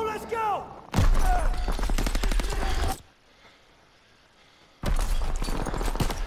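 Explosions and gunfire roar in a battle.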